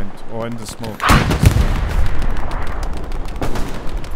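A distant explosion booms and rumbles.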